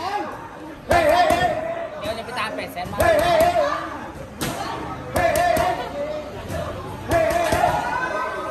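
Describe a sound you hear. Gloved punches smack against pads.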